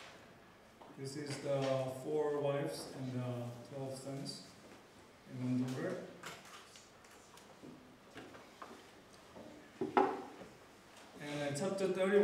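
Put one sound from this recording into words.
A man lectures calmly through a microphone and loudspeakers in a large room.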